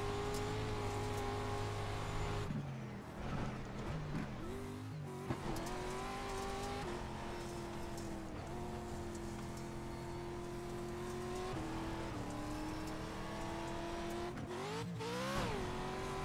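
A race car engine roars and changes pitch with the throttle.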